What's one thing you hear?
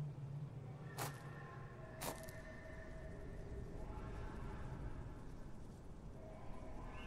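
Footsteps crunch slowly on rough ground.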